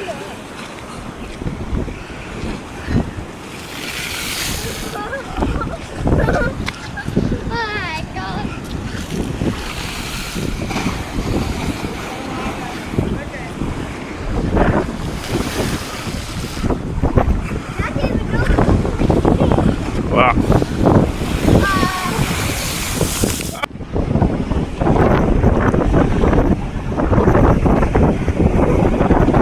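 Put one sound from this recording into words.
Waves crash and churn against a sea wall.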